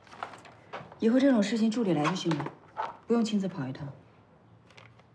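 A woman speaks calmly and firmly, close by.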